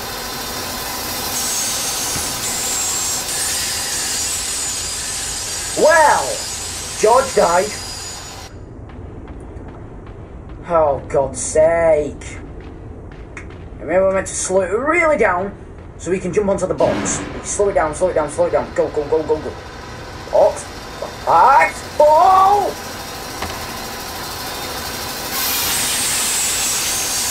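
A spinning saw blade grinds with a harsh hiss.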